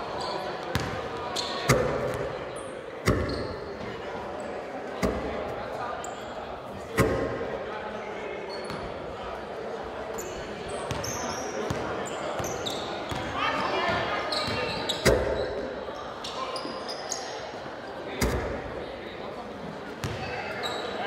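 A basketball bounces hard on a wooden floor in a large echoing hall.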